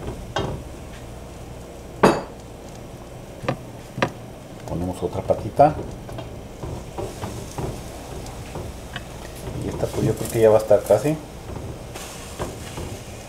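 Battered pork trotters sizzle in hot oil in a frying pan.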